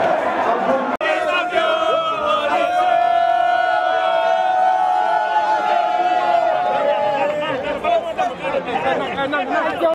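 A group of young men sing and chant together in celebration.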